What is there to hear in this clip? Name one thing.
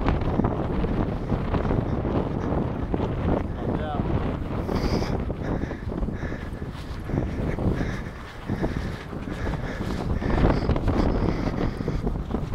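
Footsteps shuffle on grass.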